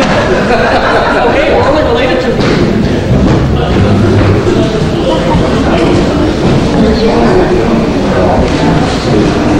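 A woman speaks with animation in a large echoing hall.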